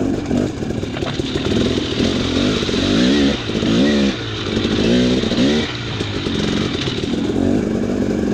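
Water splashes under tyres.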